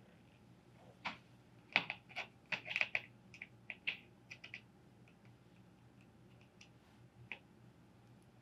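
Small metal snips click and cut close by.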